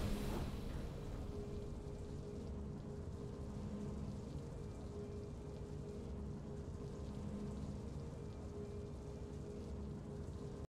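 A soft, steady musical tune plays quietly.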